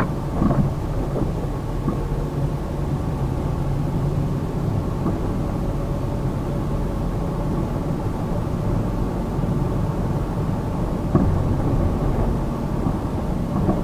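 Car tyres roll on the road with a low, steady rumble.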